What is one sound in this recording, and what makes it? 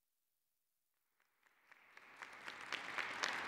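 An audience applauds in a large hall, the clapping building up.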